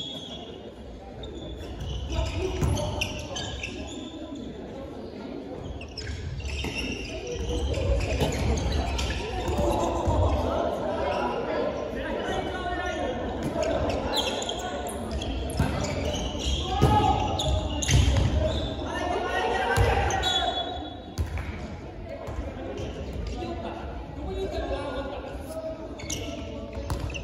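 Children and young people shout and call out in a large echoing gym.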